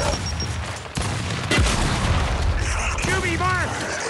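A rapid burst of gunfire rattles close by.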